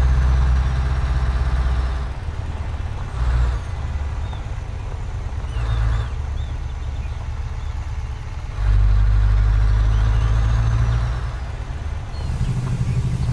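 A truck engine rumbles low, swelling and easing as it drives.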